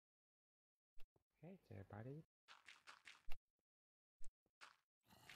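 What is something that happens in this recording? Dirt blocks are set down with short, soft thuds.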